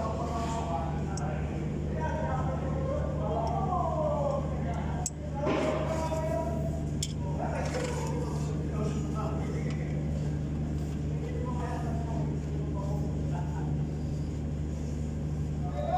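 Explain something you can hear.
A loose engine fan knocks and rattles as it is rocked by hand.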